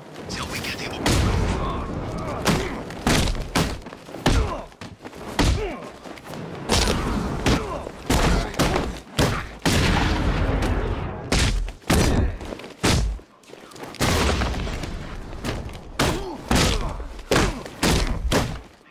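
Heavy punches and kicks thud against bodies in close combat.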